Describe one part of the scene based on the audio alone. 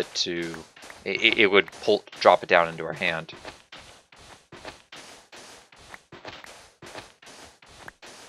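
Sand crunches in quick, repeated bursts as it is dug away.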